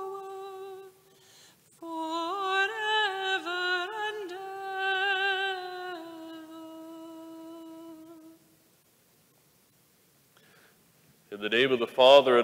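A man chants in a sung tone through a microphone in a large echoing hall.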